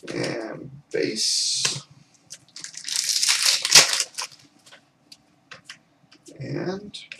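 Cards rustle and flick as they are shuffled by hand.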